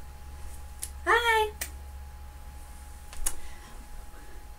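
A young woman speaks briefly and brightly, close by.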